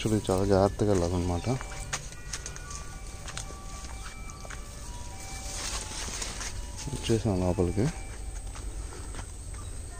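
Footsteps tread slowly over a narrow plank and a dirt path.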